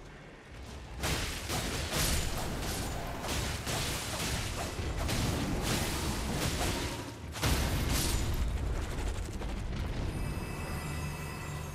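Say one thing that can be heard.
A huge creature thuds and crashes heavily across the ground.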